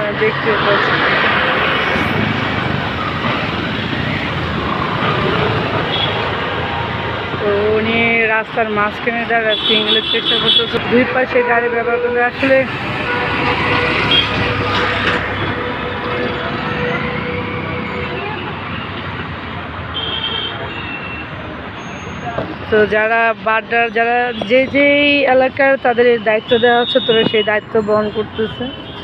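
Traffic rumbles by on a busy street.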